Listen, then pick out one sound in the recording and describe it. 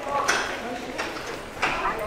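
A woman talks on a phone as she walks past.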